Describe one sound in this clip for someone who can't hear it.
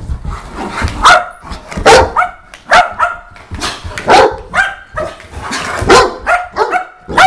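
A small dog barks sharply and repeatedly close by.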